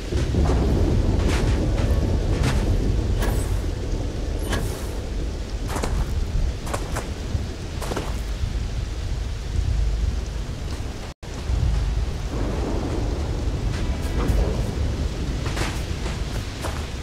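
Footsteps crunch over loose rocks and gravel.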